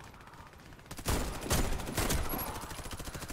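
Rifle shots crack sharply in quick succession.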